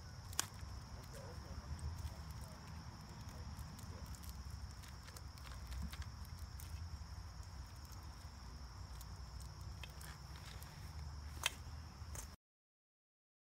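A metal garden hose clicks and rattles as it is handled and coiled.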